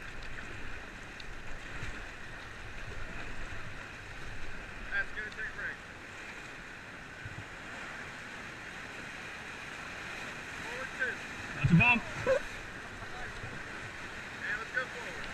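Paddles splash into the water.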